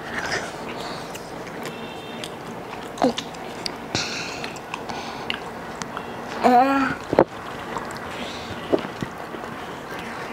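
People bite and chew crunchy pastries close by.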